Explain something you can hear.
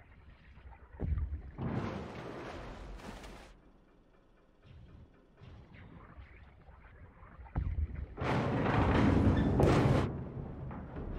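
Water splashes and churns in loud bursts.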